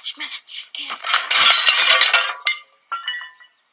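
A boy shouts loudly with effort.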